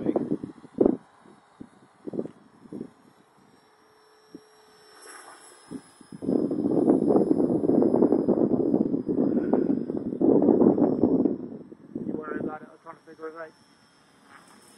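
A small helicopter whines steadily overhead.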